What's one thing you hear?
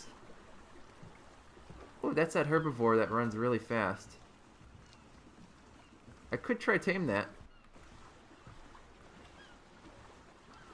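Water laps gently against a raft as it sails.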